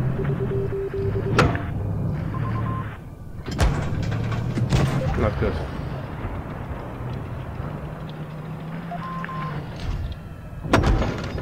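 Shells explode nearby with heavy thuds.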